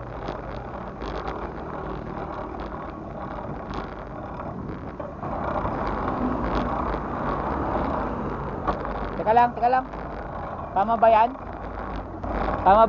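Bicycle chains click and rattle as riders pedal.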